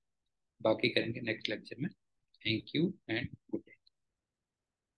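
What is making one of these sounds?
A middle-aged man speaks calmly through a microphone, as on an online call.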